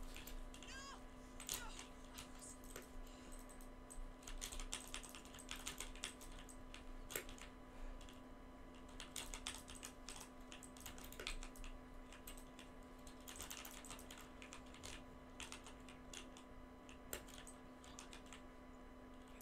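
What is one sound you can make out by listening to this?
Building pieces snap into place with quick, sharp clacks.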